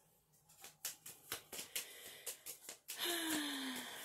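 Playing cards rustle and tap as a hand handles them.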